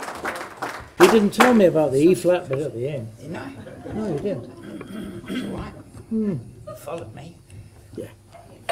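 An elderly man talks casually close by.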